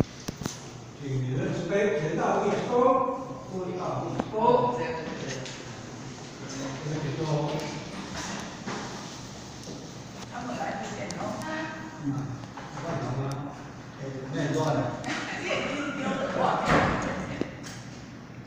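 An elderly man speaks calmly from across a room.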